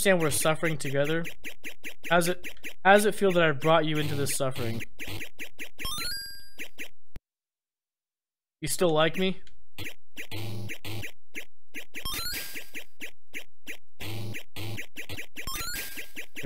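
Arcade game sound effects thump and beep in a steady rhythm.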